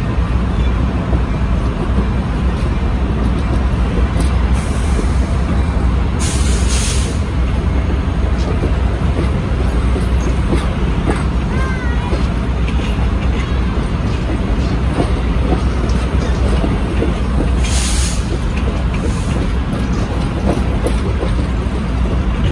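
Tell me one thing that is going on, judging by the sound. Passenger train cars rumble and clatter past on the rails close by.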